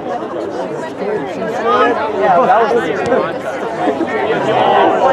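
Spectators nearby talk and cheer.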